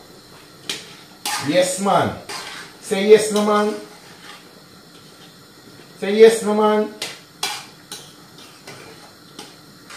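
A metal utensil clinks and scrapes against a pan.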